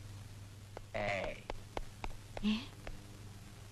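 A middle-aged woman speaks.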